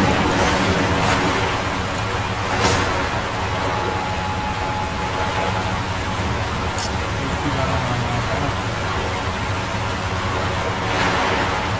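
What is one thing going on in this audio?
Rushing water churns and roars steadily.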